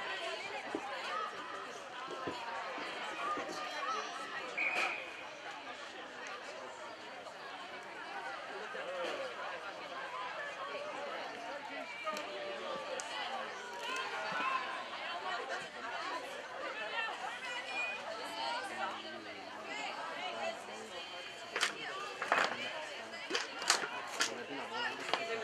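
Young women call out and shout across an open field.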